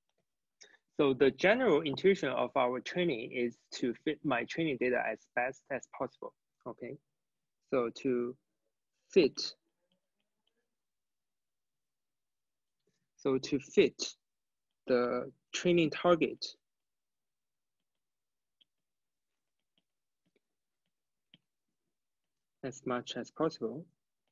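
A young man speaks calmly into a close microphone, pausing often.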